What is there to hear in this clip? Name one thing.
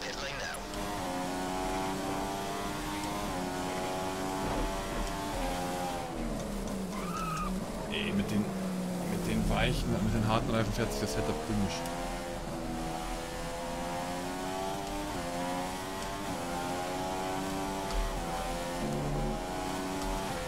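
A racing car engine whines loudly, rising in pitch through the gears.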